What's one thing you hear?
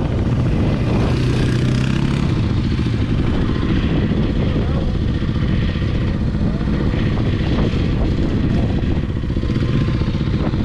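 A quad bike engine revs nearby.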